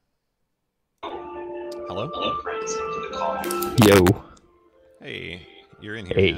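Video game music plays, bright and melodic.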